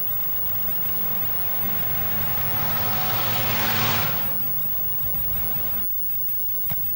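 A car engine hums steadily while driving, with road noise rising.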